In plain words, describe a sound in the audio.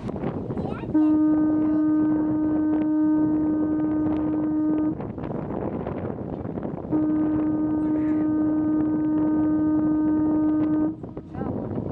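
A ship's horn sounds two long, deep blasts.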